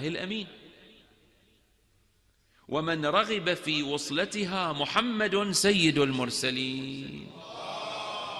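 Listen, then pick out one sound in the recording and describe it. A young man chants mournfully through a microphone in an echoing hall.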